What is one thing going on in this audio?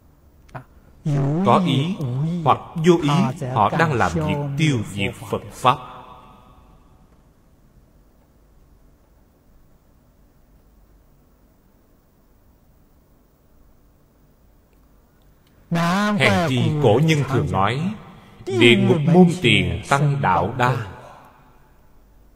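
An elderly man speaks calmly and closely into a microphone, pausing between phrases.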